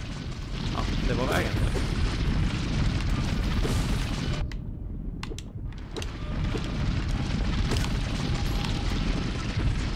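Video game sound effects chime and thump.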